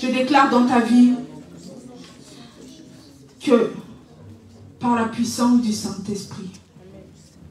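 A woman speaks and calls out with fervour through a microphone in an echoing room.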